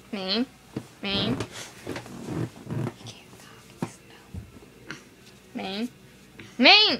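A soft toy squeaks loudly in short bursts as a hand squeezes it.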